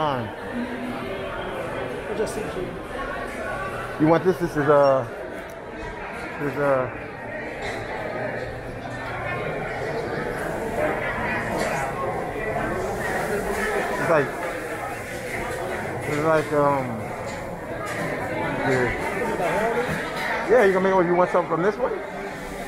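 A crowd of people chatter in a busy, echoing hall.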